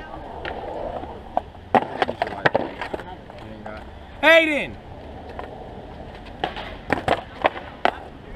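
Skateboard wheels roll and rumble over concrete.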